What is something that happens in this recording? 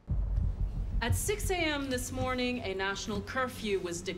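A woman speaks calmly and formally through a microphone.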